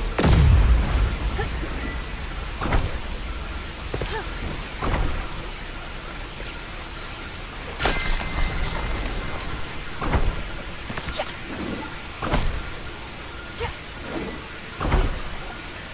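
Heavy thuds boom again and again as a figure lands on stone ledges.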